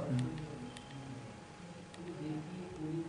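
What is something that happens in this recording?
Phone keys click softly as they are pressed.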